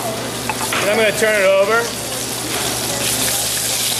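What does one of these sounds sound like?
Metal tongs clink against a pan as fish is turned.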